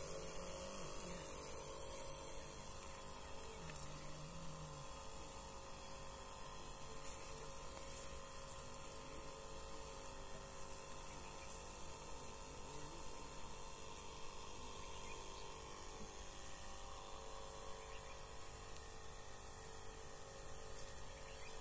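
A sprayer hisses as it sprays the crop.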